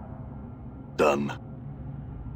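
A short magical whoosh sounds.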